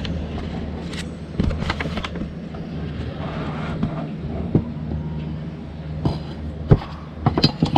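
A carbon-fibre drone frame clatters against a table.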